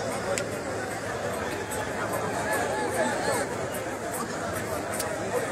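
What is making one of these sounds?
A large crowd of men and women talk and shout excitedly nearby.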